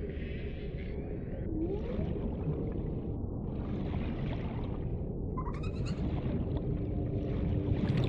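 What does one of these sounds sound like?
Water rushes past in a steady, low underwater rumble.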